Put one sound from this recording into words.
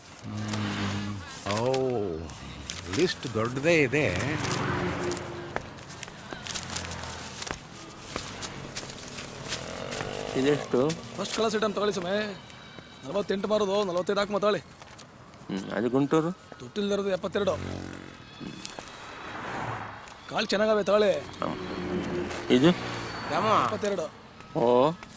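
A middle-aged man speaks in a conversational tone close by.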